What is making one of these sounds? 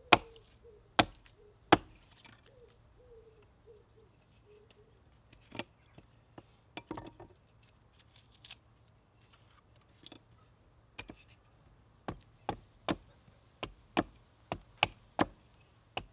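A bushcraft axe, with its blade stuck in a piece of wood, thuds down onto a wooden chopping block, splitting the wood.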